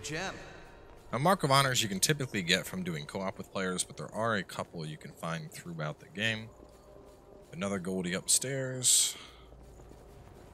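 Footsteps run over a stone floor.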